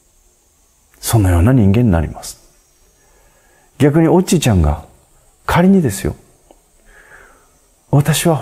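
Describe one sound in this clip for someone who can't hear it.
A middle-aged man speaks calmly and close to a microphone, in short phrases with pauses.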